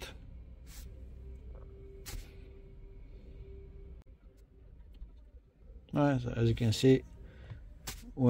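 A finger taps lightly on a touchscreen.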